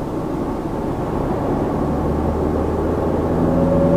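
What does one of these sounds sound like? A lorry roars past close by.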